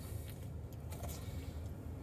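A man chews food with his mouth close.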